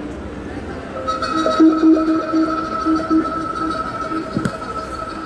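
Music with a sustained melody plays through loudspeakers outdoors.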